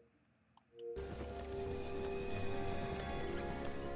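Game music and sound effects play loudly.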